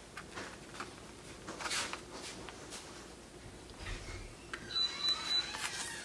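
Hands press and smooth paper, with soft rubbing sounds.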